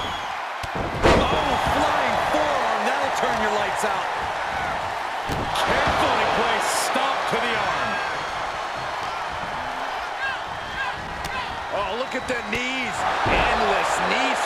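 A body slams heavily onto a wrestling ring mat with a loud thud.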